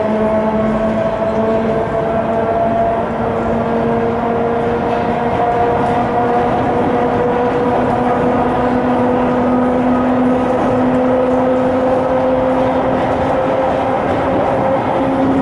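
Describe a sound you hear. A train's motors whine with a slowly rising hum.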